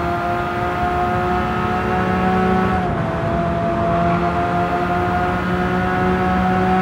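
A racing car engine roars at high revs, holding a steady pitch.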